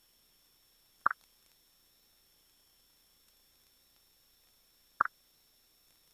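A short, bright game blip sounds.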